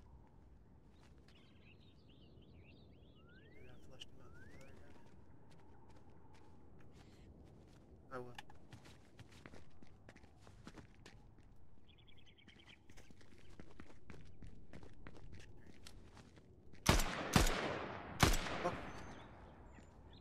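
A man talks calmly into a microphone.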